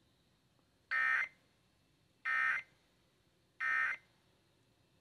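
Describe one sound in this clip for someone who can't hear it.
A radio gives out three short, sharp beeps, one after another.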